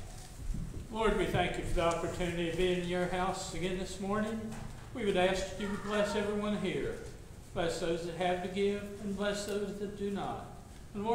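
An elderly man speaks close by in a slow, drawn-out voice.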